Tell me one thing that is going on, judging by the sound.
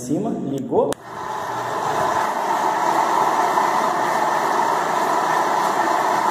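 A floor grinding machine whirs steadily as it grinds.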